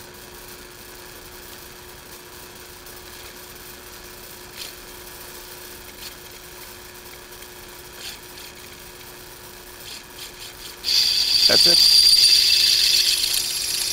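A drill press motor hums steadily.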